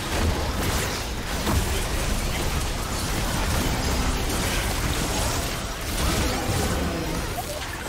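Spell effects and weapon hits crackle and whoosh in a fast video game battle.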